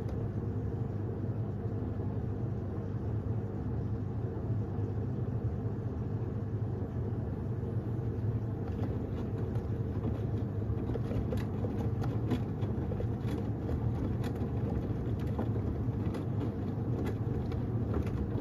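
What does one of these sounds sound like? A washing machine drum hums and churns steadily.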